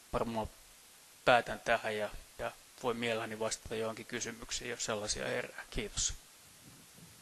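A man speaks calmly into a microphone in a large hall.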